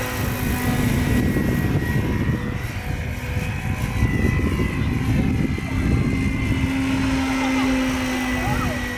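A model helicopter's motor whines steadily.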